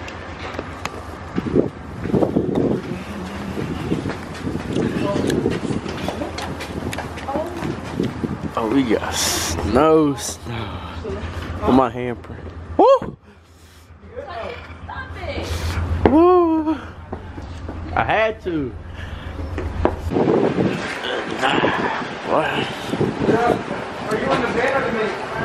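A young man talks with animation close to the microphone, laughing at times.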